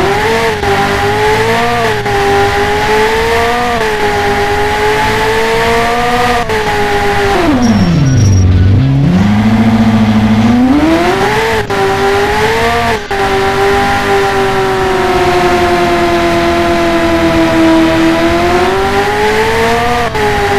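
A sports car engine hums steadily, dropping low as the car brakes and revving up again.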